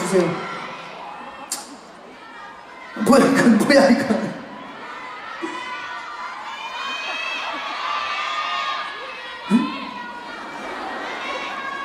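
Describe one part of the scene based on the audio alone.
A young man speaks calmly into a microphone, heard through loudspeakers in a large hall.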